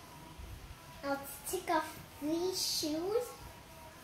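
A young girl speaks up close in a high, sing-song voice.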